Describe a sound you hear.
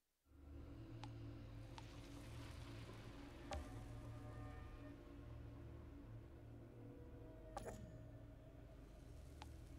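Short soft menu clicks sound now and then.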